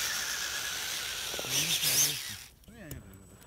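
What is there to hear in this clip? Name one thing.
A small electric motor whines as a toy truck climbs.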